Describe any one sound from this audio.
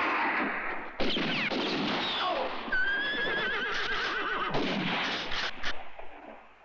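Gunshots crack and echo outdoors.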